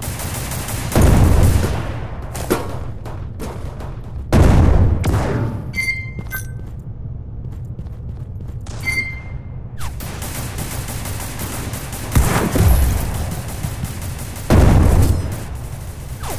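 Loud rifle shots boom with a short echo.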